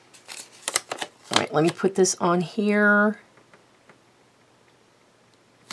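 Paper rustles softly as hands fold it.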